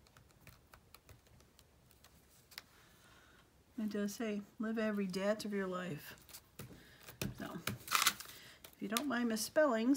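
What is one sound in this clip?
Hands rub and press on a sheet of paper.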